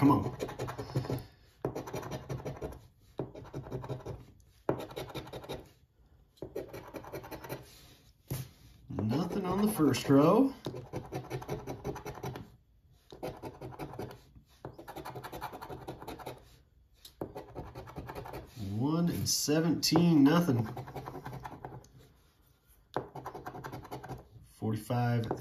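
A coin scratches rapidly across a card in short bursts.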